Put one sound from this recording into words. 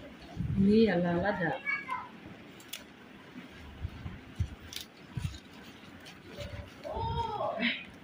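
Scissors snip through leaf stems.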